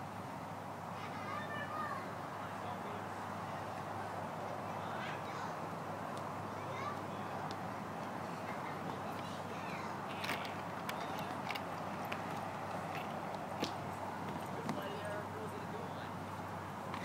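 Children call out and chatter faintly outdoors.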